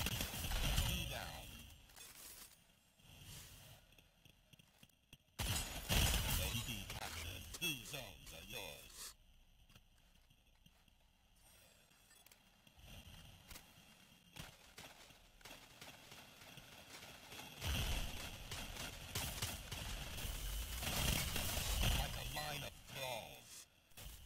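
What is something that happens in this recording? A man talks through a microphone.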